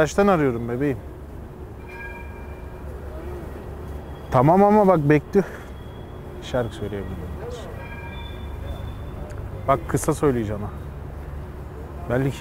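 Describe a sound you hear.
A young man talks on a phone nearby with animation.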